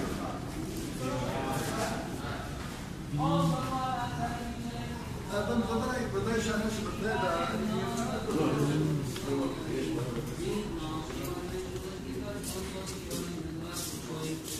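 Several men murmur and chant quietly in the distance.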